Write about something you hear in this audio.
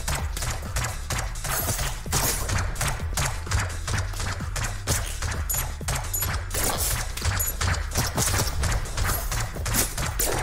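A heavy electronic music track plays with a deep pulsing beat.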